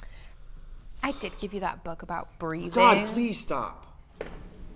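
A young woman speaks sharply and with agitation, close by.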